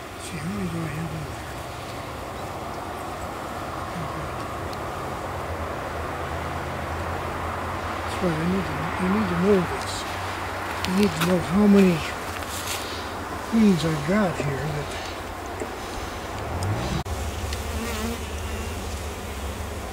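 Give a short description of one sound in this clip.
Bees buzz in a steady, busy swarm.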